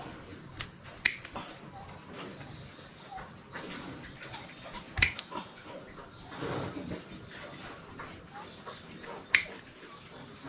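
Hoof shears snip sharply at a goat's hoof a few times.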